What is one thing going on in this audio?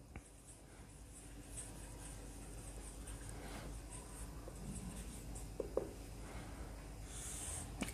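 A marker squeaks faintly as it writes on a whiteboard.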